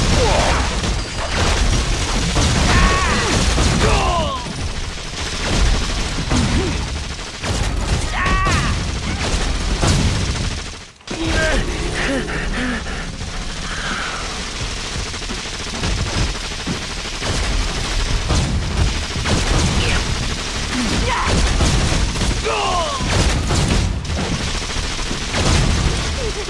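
Gunshots crack rapidly during a fight.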